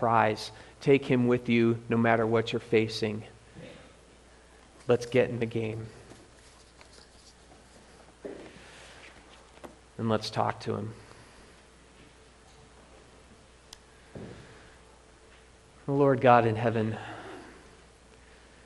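A young man speaks calmly through a microphone in an echoing room, pausing between phrases.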